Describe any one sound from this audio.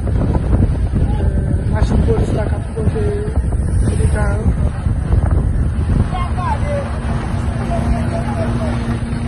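A truck engine rumbles and tyres roll on the road close by.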